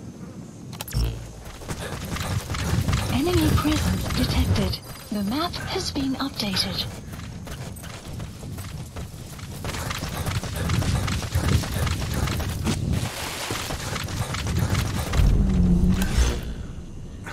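Footsteps rustle quickly through dry grass.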